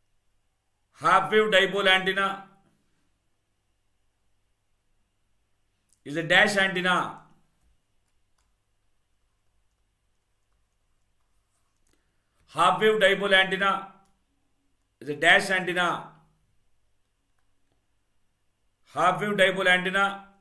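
A man speaks calmly into a close microphone in short bursts with pauses.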